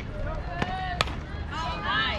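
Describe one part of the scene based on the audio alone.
A ball smacks into a catcher's mitt.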